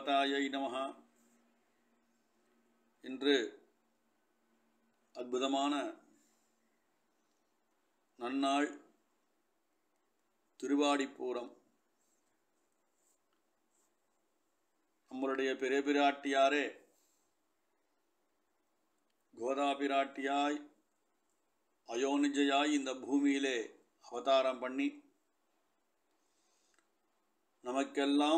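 A man recites in short, measured phrases with pauses between them.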